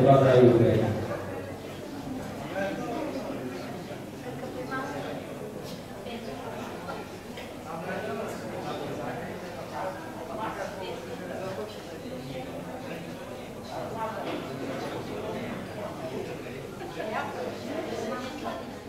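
People murmur quietly in the background of a large room.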